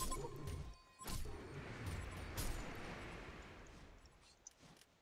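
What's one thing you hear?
Magical spell effects whoosh and crackle in a fight.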